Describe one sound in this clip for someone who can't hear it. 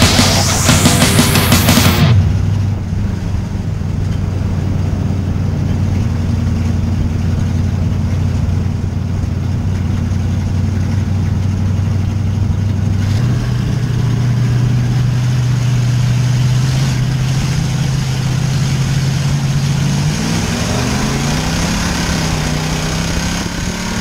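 A race car engine roars loudly up close, its pitch shifting as the car speeds up and slows.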